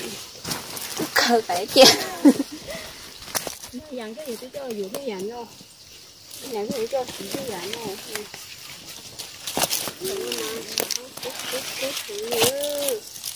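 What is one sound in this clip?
Young women talk with animation close by.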